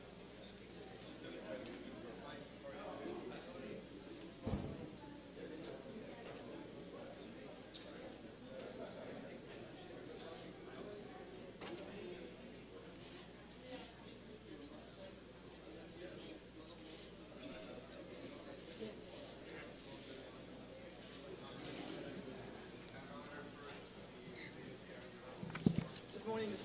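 A crowd murmurs and chatters in an echoing hallway.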